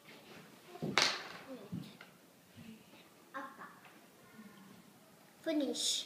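Small plastic caps click as a child stacks them on a table.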